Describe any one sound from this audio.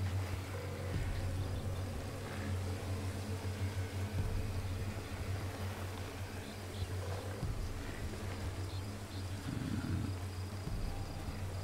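Footsteps tread softly on hard ground.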